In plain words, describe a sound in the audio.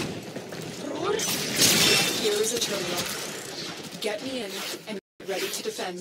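Metal blades swing and clash in quick strikes.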